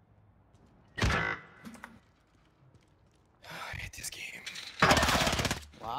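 Rapid gunfire bursts out loudly.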